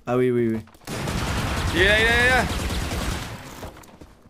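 Rapid gunshots fire in a game.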